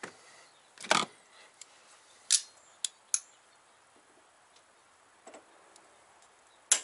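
Metal tools clink and rattle against an engine.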